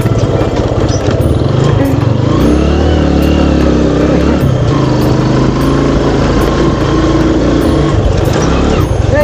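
A motorcycle engine putters steadily close by.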